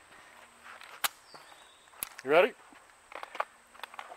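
Footsteps crunch on sand close by.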